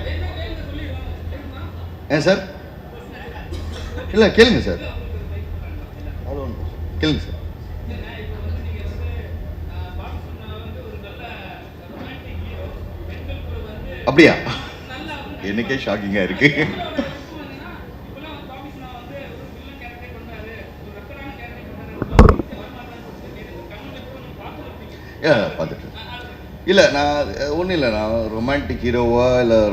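A young man speaks into a microphone, pausing often, over a loudspeaker.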